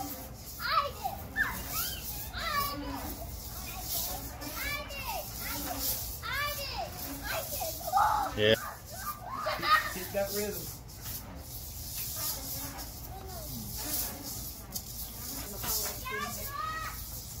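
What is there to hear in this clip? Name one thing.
Young children shout and chatter playfully outdoors.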